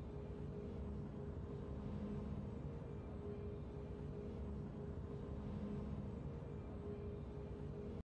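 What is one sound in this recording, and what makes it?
Triumphant music plays steadily.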